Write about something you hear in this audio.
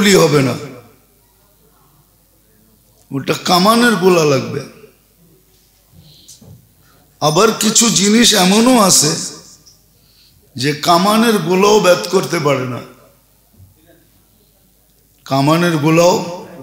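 An elderly man preaches into a microphone in sung, drawn-out phrases, heard through a loudspeaker.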